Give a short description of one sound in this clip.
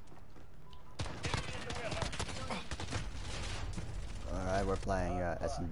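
Rapid gunshots crack and echo.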